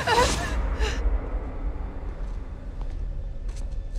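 A young woman speaks tensely nearby.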